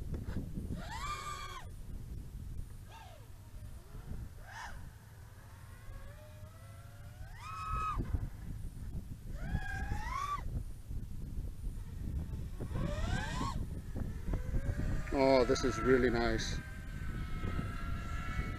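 Drone motors whine and rev up and down in short bursts.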